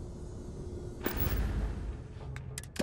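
A game menu opens with a soft whoosh.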